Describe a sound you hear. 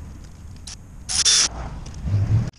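An aerosol can hisses in short sprays.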